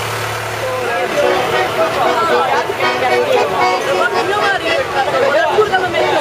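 An accordion plays a lively tune.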